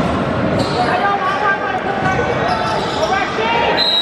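A crowd cheers in an echoing gym.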